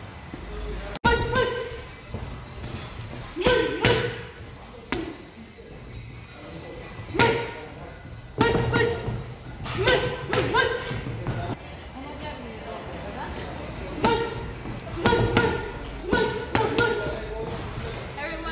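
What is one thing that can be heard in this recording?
Boxing gloves smack against padded mitts in quick bursts.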